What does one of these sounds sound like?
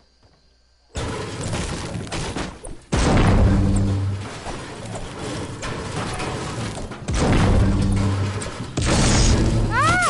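A pickaxe chops repeatedly into wood.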